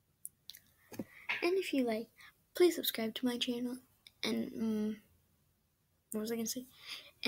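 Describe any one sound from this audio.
A young girl talks casually close to a microphone.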